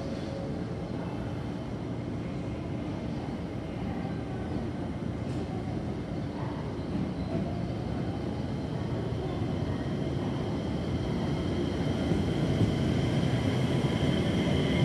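A train rumbles into the station, growing louder as it draws close.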